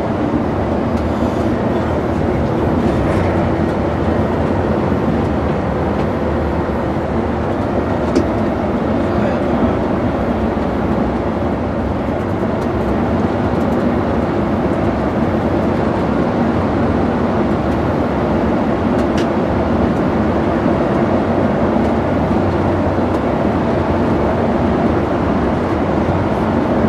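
A bus engine drones steadily while driving along a highway.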